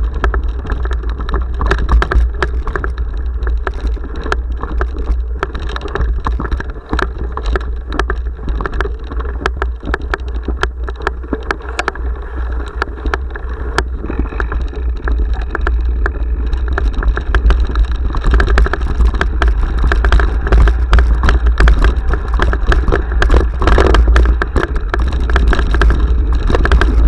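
A bicycle frame rattles and clicks over bumps.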